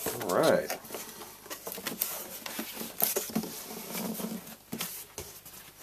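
Foam packing squeaks and rubs as it is handled.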